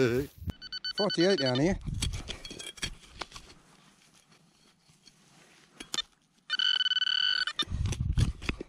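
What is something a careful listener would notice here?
A metal detector beeps in short high tones.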